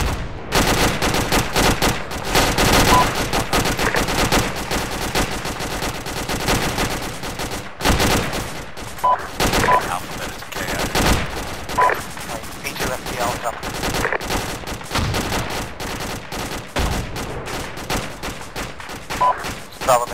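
A rifle fires.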